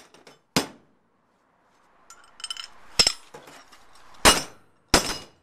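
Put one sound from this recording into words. Metal pieces clatter and clank onto a metal surface.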